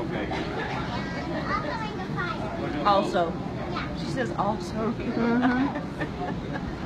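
A little girl speaks in a small, high voice.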